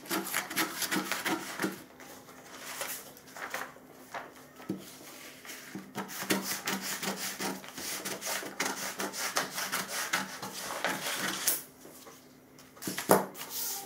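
Scissors snip through heavy cloth in short crunching cuts.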